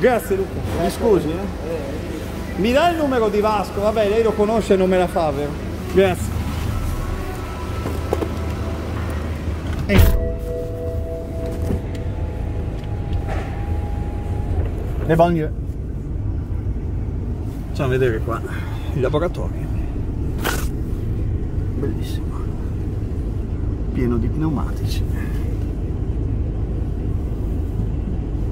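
Fabric rustles and scrapes close against the microphone.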